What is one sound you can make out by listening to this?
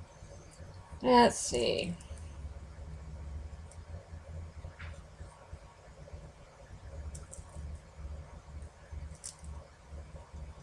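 Small beads clink and rattle in a plastic dish as fingers sort through them.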